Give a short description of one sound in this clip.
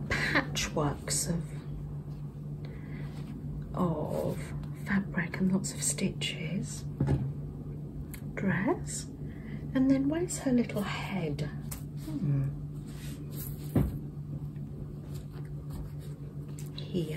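Cloth rustles softly as hands handle it.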